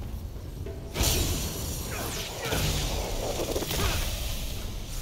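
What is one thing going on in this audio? A magic spell bursts with a loud crackling whoosh.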